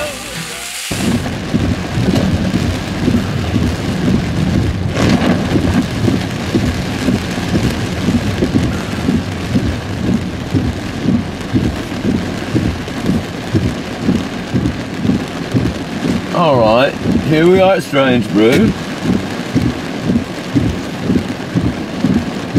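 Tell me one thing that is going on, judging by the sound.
Heavy rain drums on a car's windscreen.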